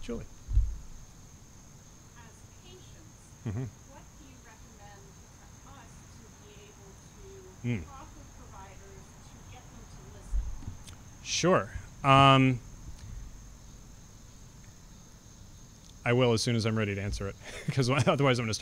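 A man speaks calmly into a microphone outdoors.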